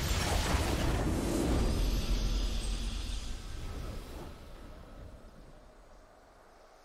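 A triumphant music sting plays and fades.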